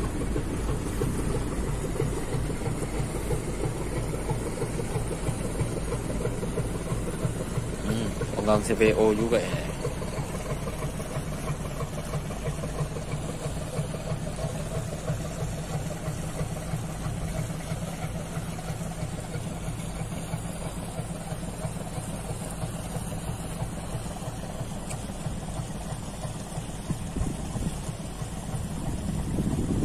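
Water swishes and splashes along a boat's hull.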